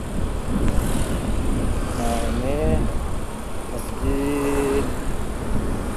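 A scooter passes close by.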